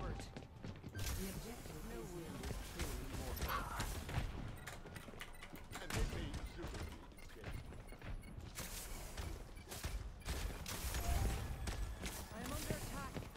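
Gunfire and game effects crackle and pop.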